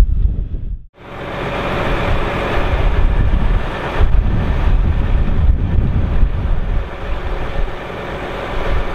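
A tractor engine rumbles close by as it drives slowly over gravel.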